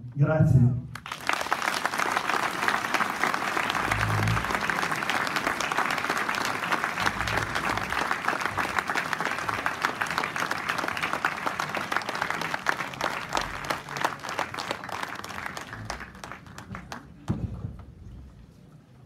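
A large crowd applauds steadily and then fades.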